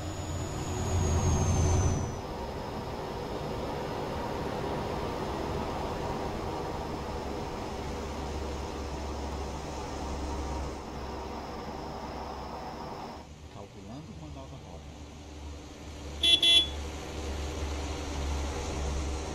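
A coach bus drives past on a road.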